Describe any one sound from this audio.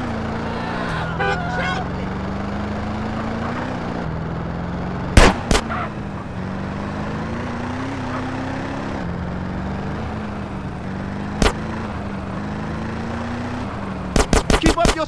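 A car engine hums steadily as a car drives.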